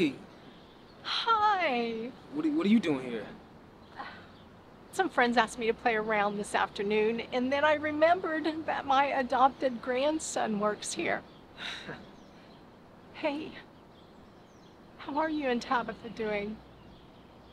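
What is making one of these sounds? A middle-aged woman speaks warmly and laughs close by.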